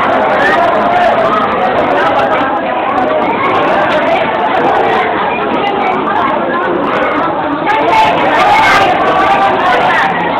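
A crowd of people chatter nearby.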